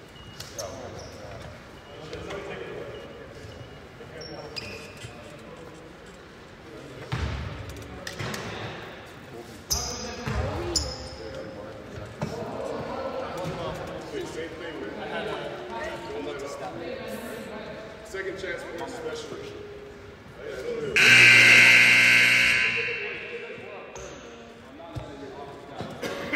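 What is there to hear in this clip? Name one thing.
A man talks nearby in a large echoing hall.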